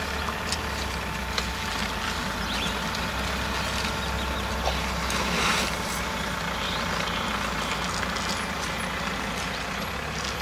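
Elephants' heavy feet shuffle and thud on a road.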